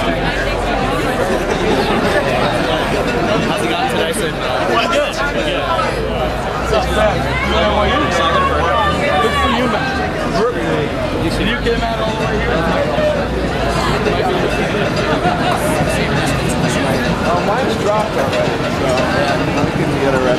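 A crowd of young men and women chatter and call out nearby, outdoors.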